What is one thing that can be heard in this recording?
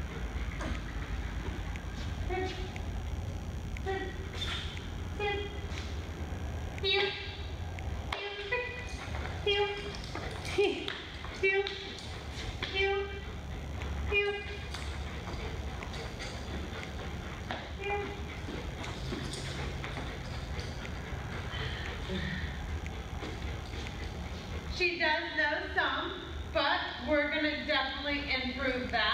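A woman gives short, brisk commands nearby.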